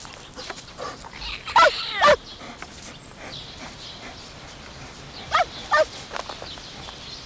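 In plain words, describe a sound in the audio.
A kitten meows.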